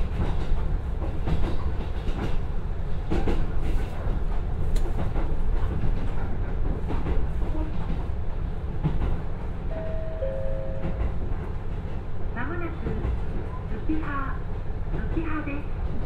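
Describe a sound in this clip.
Train wheels clatter and rattle on the rails.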